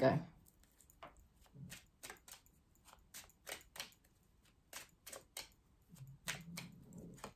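Small objects click and tap in a person's hands.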